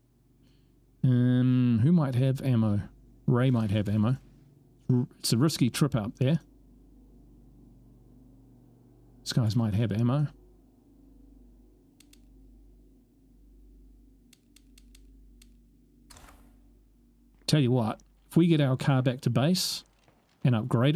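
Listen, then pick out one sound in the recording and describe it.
A man talks with animation into a close microphone, in bursts.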